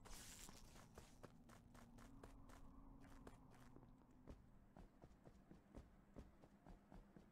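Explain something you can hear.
Light footsteps patter quickly and steadily.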